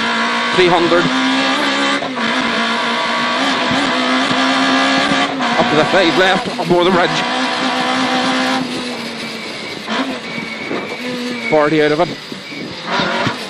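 A rally car engine roars and revs hard up and down through the gears.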